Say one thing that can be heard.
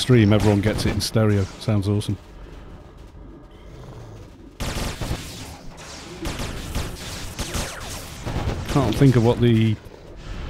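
Magic spells crackle and whoosh in a game battle.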